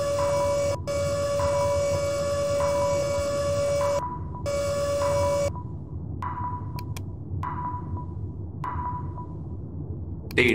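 A control console gives a series of short electronic beeps.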